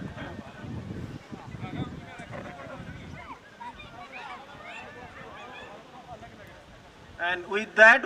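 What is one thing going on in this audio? People chatter faintly in the background.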